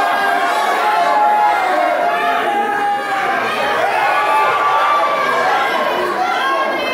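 A crowd of men and women cheers and shouts loudly in a large echoing hall.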